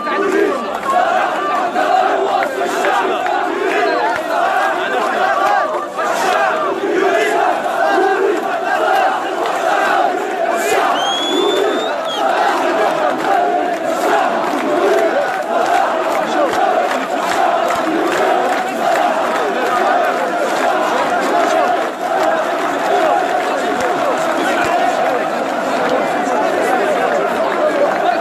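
A large crowd of men chants loudly and steadily outdoors.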